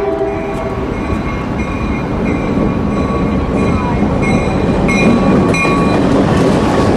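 A diesel locomotive sounds its horn in repeated blasts as it approaches.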